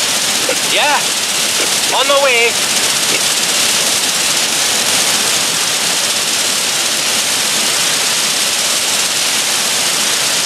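Fire hoses spray water with a steady hiss.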